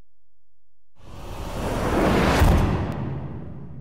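A loud rushing whoosh swells up and slowly fades.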